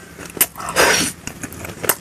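A young woman licks and sucks her fingers with loud smacks.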